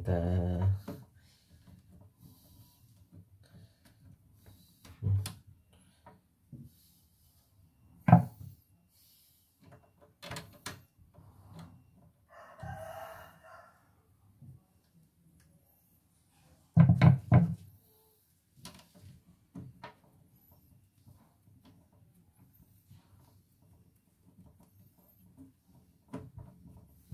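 A screwdriver clicks and scrapes against metal parts.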